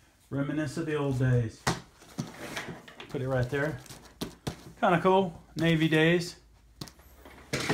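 Hands pat and rustle a fabric bag.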